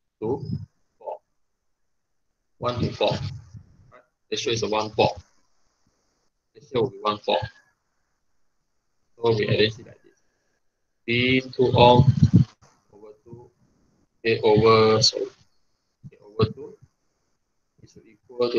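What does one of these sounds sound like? A young man explains calmly through a microphone, in short phrases with pauses.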